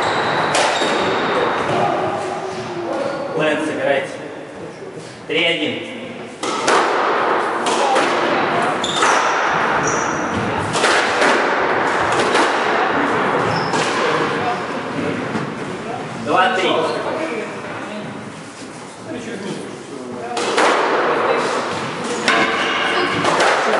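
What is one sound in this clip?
A squash ball smacks sharply off racquets and walls, echoing in a hard room.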